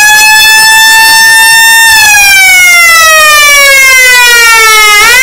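An electric siren wails loudly and close by, its pitch slowly rising, then falling.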